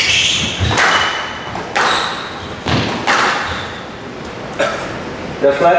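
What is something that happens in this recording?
A squash ball smacks off racket and court walls, echoing in an enclosed court.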